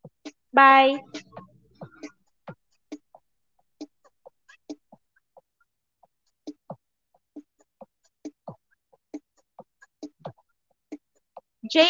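A young woman speaks with animation into a microphone, heard through an online call.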